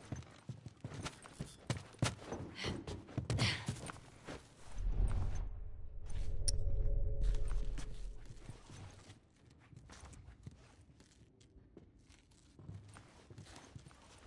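Footsteps creep softly across a wooden floor.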